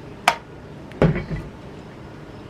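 A jug knocks down onto a table.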